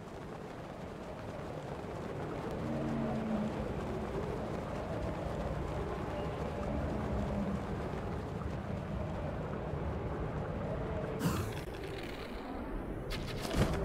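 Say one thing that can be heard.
Wind howls steadily in a snowstorm.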